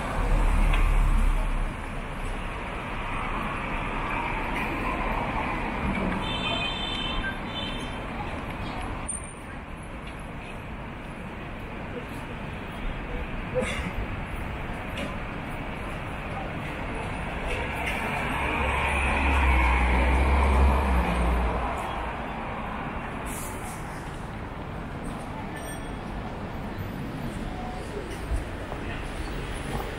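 Traffic hums steadily along a city street.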